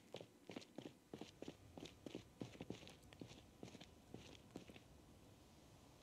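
Footsteps walk steadily on pavement.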